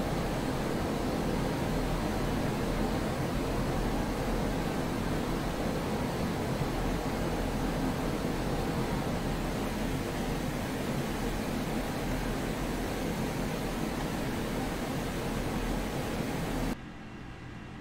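A jet engine roars steadily from inside the cockpit.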